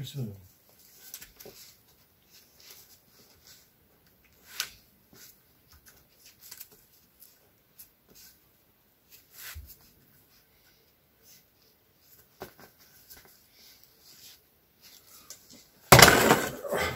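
Hands knock and scrape lightly on a wooden board.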